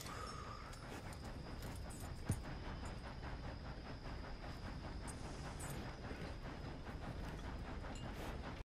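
Footsteps brush through tall grass.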